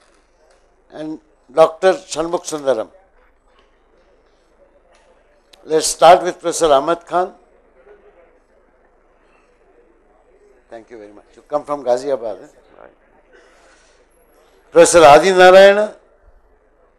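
A man speaks through a microphone in short bursts.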